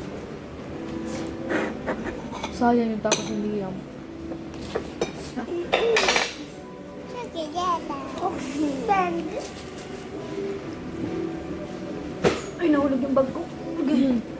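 Young children talk and babble close by.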